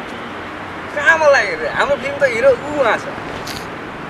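A young man talks outdoors.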